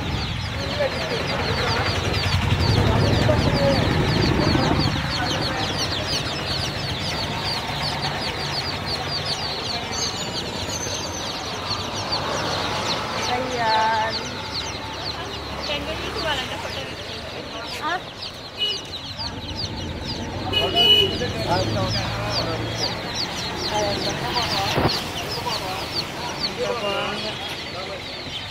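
Many chicks cheep in a constant, high-pitched chorus.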